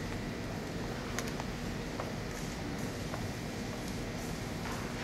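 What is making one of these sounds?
A crowd of children murmurs and chatters in a large echoing hall.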